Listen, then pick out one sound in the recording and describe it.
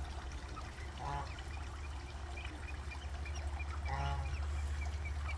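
Ducks quack softly.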